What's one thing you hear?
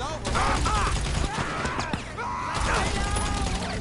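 A pistol fires shots.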